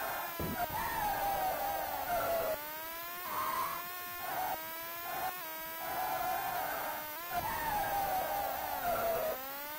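A racing car engine whines loudly, its pitch climbing and dropping sharply with each gear change.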